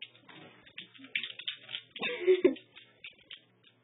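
A dog growls playfully.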